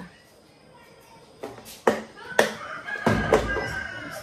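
A plastic container clatters.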